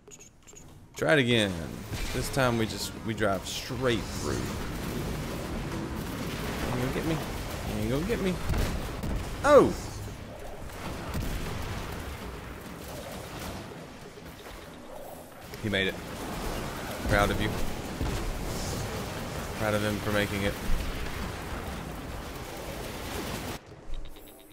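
Gunfire and explosions from a video game crackle steadily.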